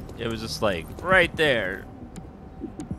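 A man laughs into a close microphone.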